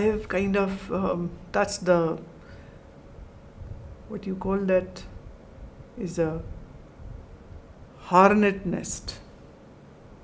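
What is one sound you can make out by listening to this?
A middle-aged woman speaks calmly and slowly, close by, in short phrases with pauses.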